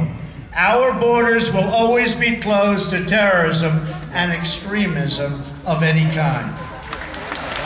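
A man speaks over loudspeakers outdoors, echoing between buildings.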